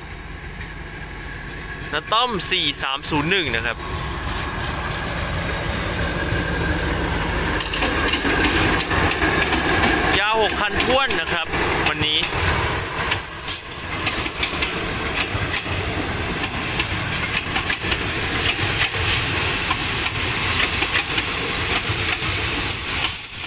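A diesel locomotive rumbles past at close range.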